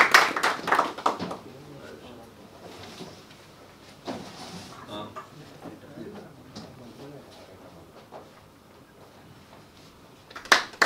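Several men murmur and talk quietly nearby.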